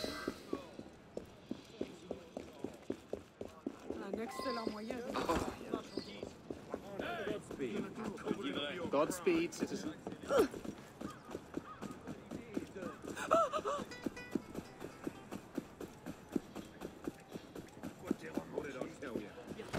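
Running footsteps pound quickly on cobblestones.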